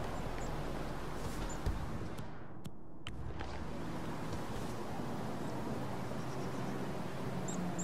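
Soft footsteps shuffle on wooden boards.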